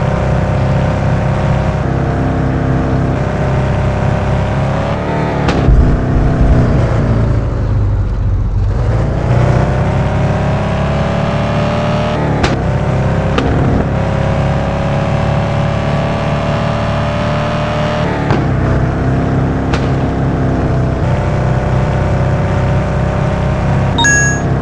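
A sports car engine roars at high revs, rising and falling in pitch as the car speeds up and slows down.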